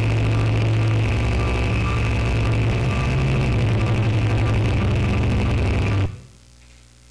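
Loud electronic droning music plays and cuts off abruptly.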